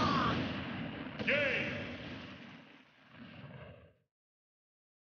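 A loud blast booms as a game match ends.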